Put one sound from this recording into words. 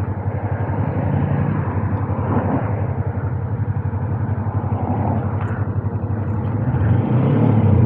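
A motorcycle engine idles with a rapid, throbbing putter.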